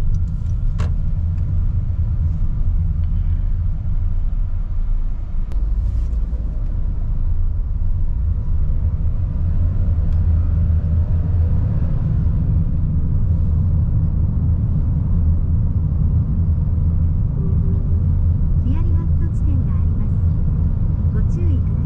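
A car engine hums steadily and rises as the car speeds up.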